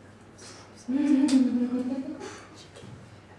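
A young woman makes a short voiced sound close by.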